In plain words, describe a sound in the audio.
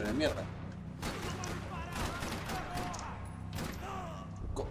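Gunshots crack and echo through a large hall.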